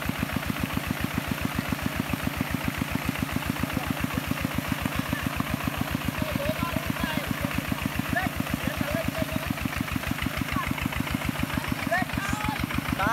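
A small engine chugs steadily close by.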